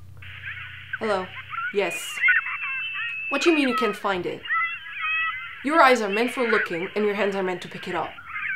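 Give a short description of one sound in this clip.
A young woman talks anxiously into a phone, close by.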